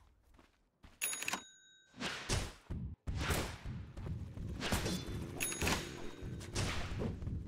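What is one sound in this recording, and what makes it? Blows and spell blasts crash in quick bursts of fighting.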